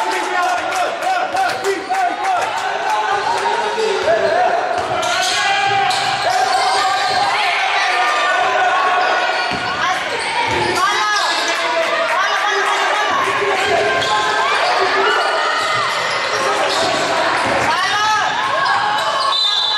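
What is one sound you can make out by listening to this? Sneakers squeak sharply on a hard court.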